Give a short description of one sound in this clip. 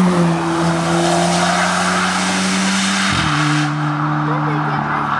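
A rally car's engine roars as it drives away up a road.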